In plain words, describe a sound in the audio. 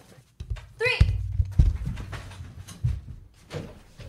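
Heavy footsteps thump on the floor as a man hurries away.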